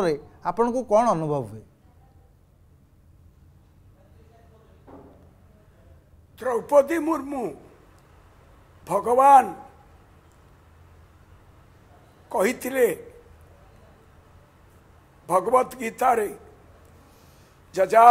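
An elderly man speaks slowly through a microphone, in short phrases with pauses.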